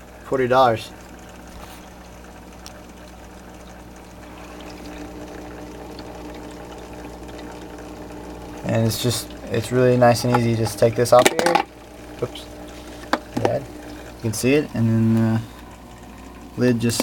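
A pump hums steadily.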